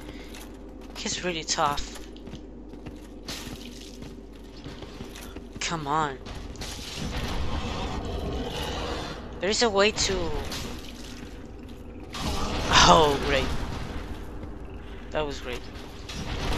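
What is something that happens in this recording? A large beast growls and roars.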